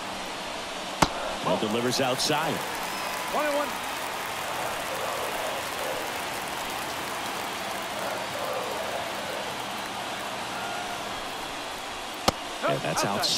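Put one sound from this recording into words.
A ball smacks into a catcher's mitt with a sharp pop.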